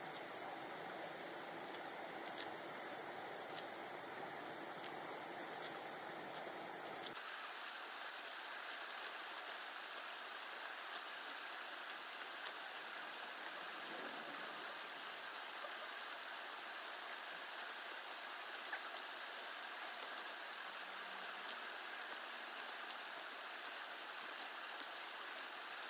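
Leaves rustle and snap as a man picks from a bush.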